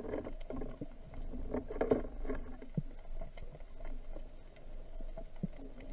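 Water surges and swirls, heard from underwater.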